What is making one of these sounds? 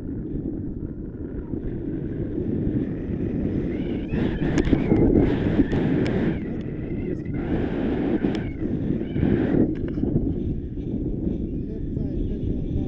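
Strong wind rushes steadily past a microphone outdoors.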